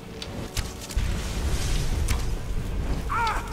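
A fiery blast roars with a deep rumble.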